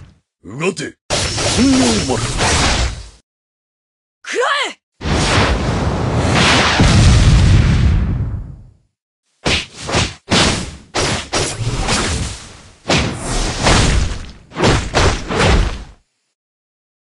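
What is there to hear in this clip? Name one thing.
Swords slash and clash in quick bursts.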